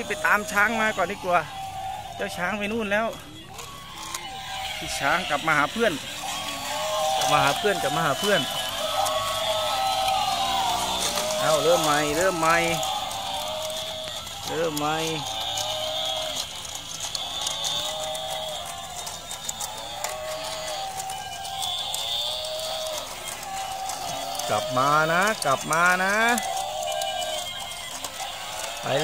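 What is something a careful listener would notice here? Battery-powered toy animals play squeaky electronic animal calls and jingles.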